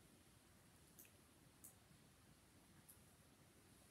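Keys click softly on a laptop keyboard.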